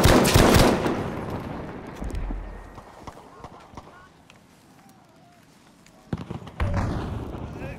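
Rifle shots crack and echo.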